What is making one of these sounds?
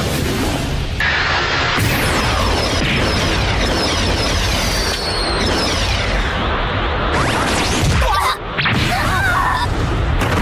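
Energy blasts roar and whoosh loudly.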